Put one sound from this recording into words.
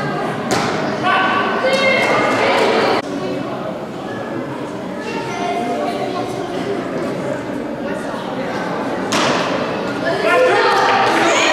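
Children cheer and shout loudly.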